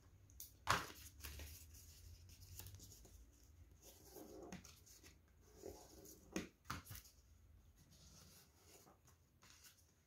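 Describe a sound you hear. A pen scratches on paper.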